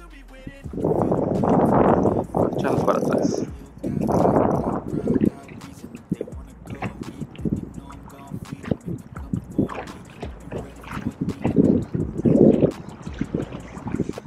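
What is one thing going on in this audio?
Water slaps and splashes against a small boat's hull.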